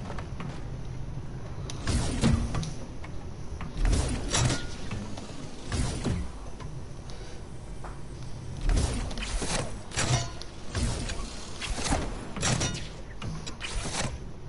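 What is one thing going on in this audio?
A rolling ball thuds and bounces along a hard surface.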